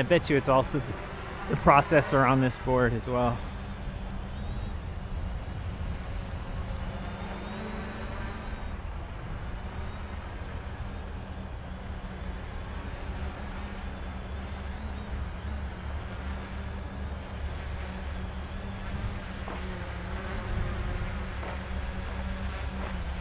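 Wind blows outdoors, rumbling low and steady.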